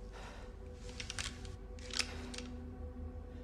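Metal clicks sharply as it is handled.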